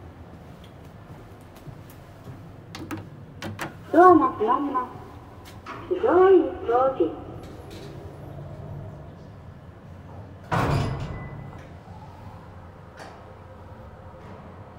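An elevator hums softly as it rides.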